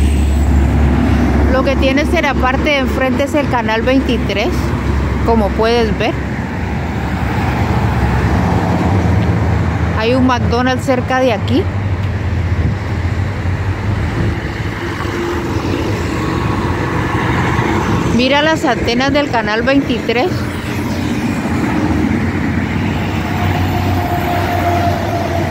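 Heavy trucks rumble loudly as they drive past.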